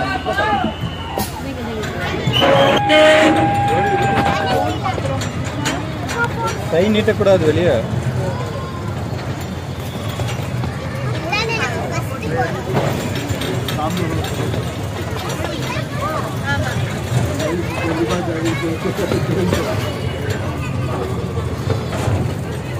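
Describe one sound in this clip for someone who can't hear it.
A crowd of children and adults chatter and shout excitedly close by.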